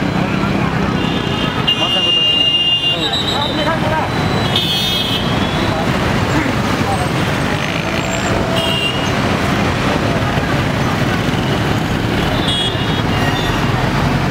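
Horns honk in the street traffic.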